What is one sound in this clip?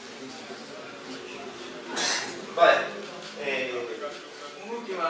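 An elderly man speaks calmly into a microphone, heard through a loudspeaker in a room.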